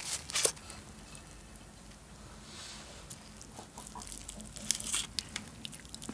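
Small sticky food sounds crackle close to a microphone as seaweed and rice are handled.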